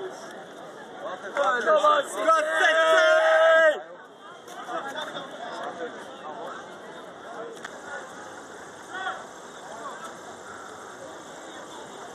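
A crowd murmurs and chatters in the open air.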